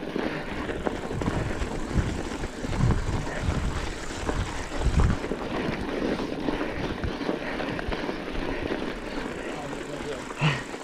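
A bicycle rattles and thumps over bumps.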